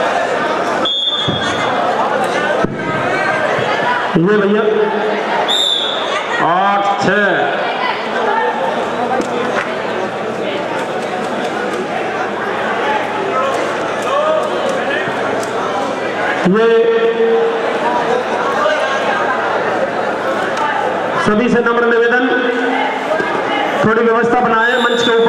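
A crowd of men chatters and calls out steadily in a large echoing hall.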